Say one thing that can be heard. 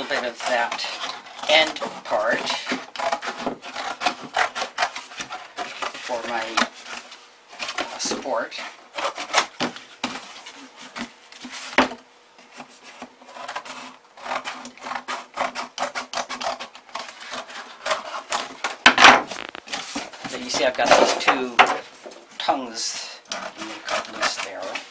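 Scissors snip and crunch through stiff paper.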